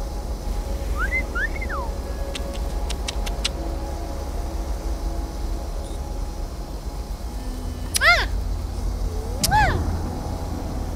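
A small parakeet chirps and squeaks up close.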